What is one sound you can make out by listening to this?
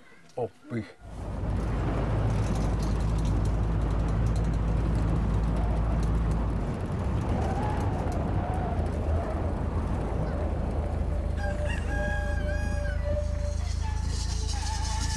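Wind rushes over an open outdoor space.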